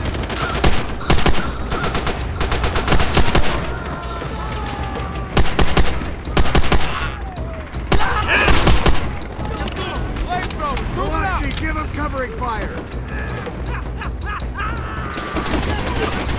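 Distant gunfire and explosions rumble throughout.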